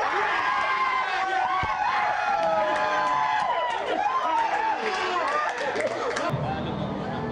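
A crowd of young men cheers and shouts loudly.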